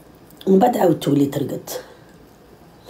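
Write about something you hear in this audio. A young woman speaks close to a phone microphone.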